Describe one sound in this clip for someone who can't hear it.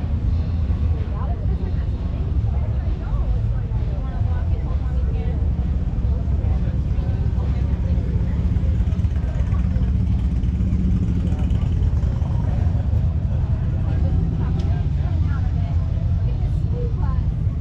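A crowd of men and women chat in the distance outdoors.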